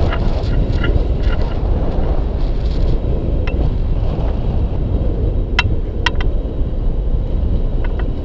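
Strong wind roars steadily past a microphone.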